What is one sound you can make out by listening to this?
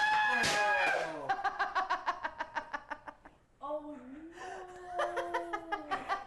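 A young woman laughs loudly and uncontrollably.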